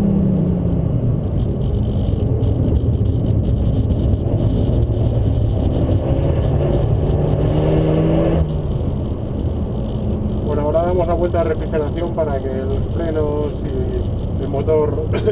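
A car engine roars and revs up steadily, then drops as a gear changes.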